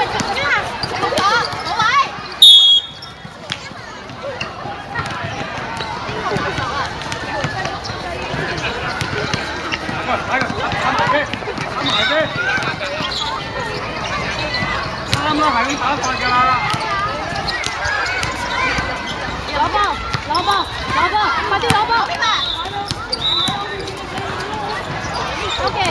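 Many young women and men chatter and call out around an outdoor court.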